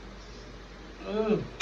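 A young man close to the microphone murmurs after taking a bite.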